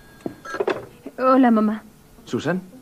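A young man speaks into a telephone.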